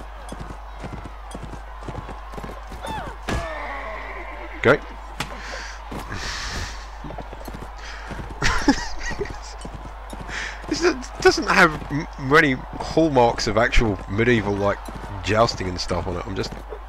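Horse hooves thud rapidly at a gallop.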